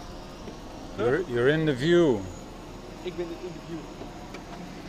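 A man speaks from inside a car, heard through an open window.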